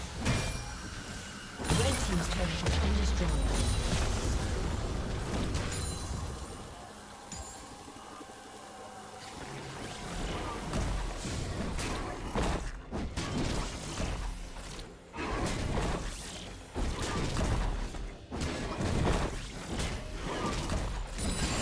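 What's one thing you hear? Battle effects in a video game boom and crackle.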